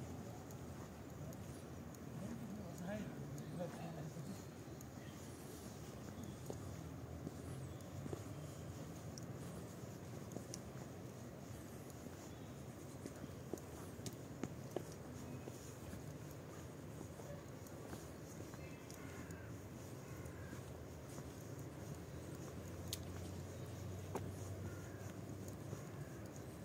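Footsteps scuff slowly on a stone path outdoors.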